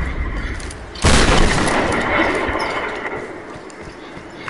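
A loud blast bursts and rumbles away.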